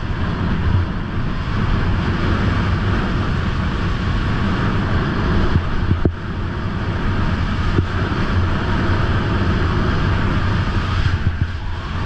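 Skis scrape and hiss steadily over packed snow.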